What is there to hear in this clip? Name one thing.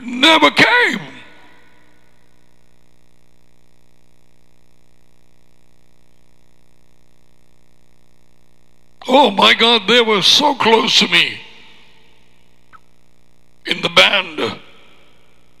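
A middle-aged man speaks with animation into a close headset microphone, in short bursts.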